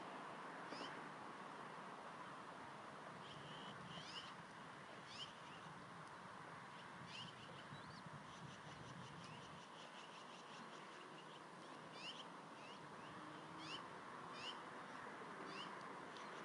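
Eaglets peep with short, high, rising chirps, again and again.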